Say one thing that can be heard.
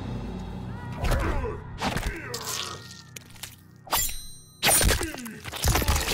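Heavy blows land with loud thuds and crunches.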